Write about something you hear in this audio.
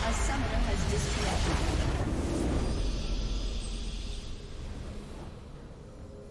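A game's victory fanfare blares with a loud magical burst and fades.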